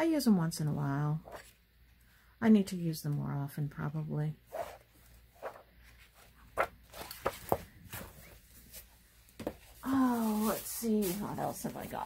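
Book pages rustle and flap as they are turned.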